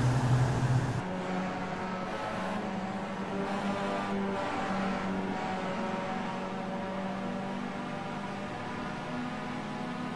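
Several racing car engines drone together as the cars speed along.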